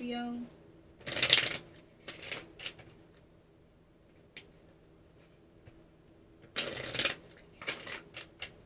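Cards rustle and slap softly as hands handle them.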